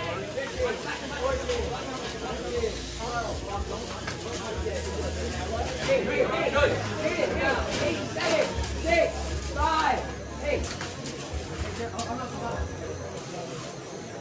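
Robot motors whir as small robots drive.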